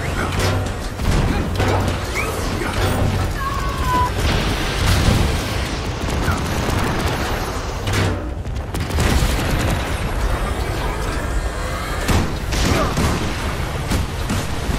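Punches and shield blows thud.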